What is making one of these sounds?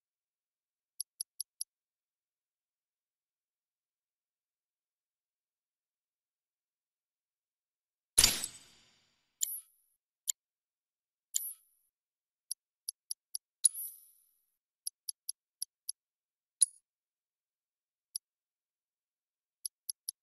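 Short menu beeps tick in quick succession.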